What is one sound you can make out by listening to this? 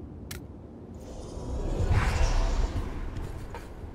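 A soft magical whoosh swells and fades.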